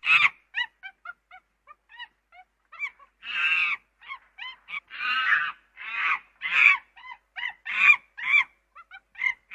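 A chimpanzee hoots and screams in rising, excited bursts.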